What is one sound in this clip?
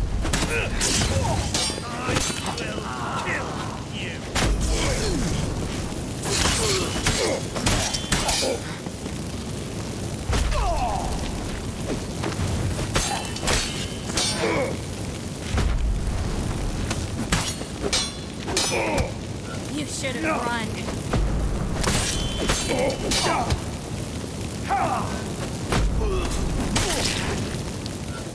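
Swords clash and strike with sharp metallic blows.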